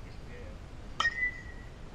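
A metal bat strikes a baseball with a sharp ringing ping.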